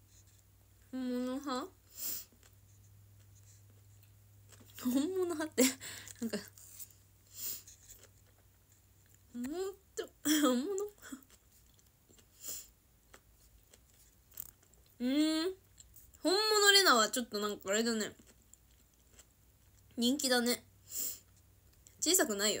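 A young woman talks casually, close to a phone microphone.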